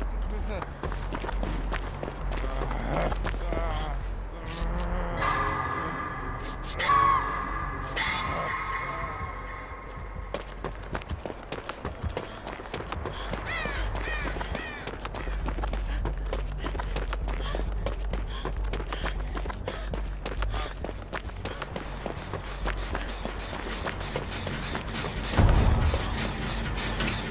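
Footsteps crunch quickly through snow and grass.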